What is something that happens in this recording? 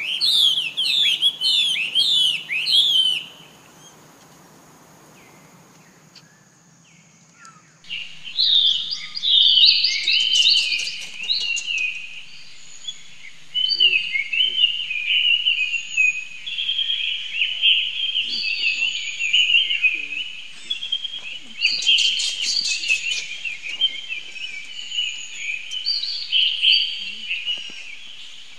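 A baby monkey squeaks and cries in high, shrill calls.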